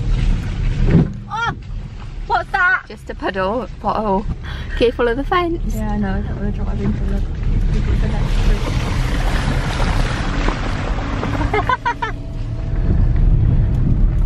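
A car engine rumbles low and steady inside the car.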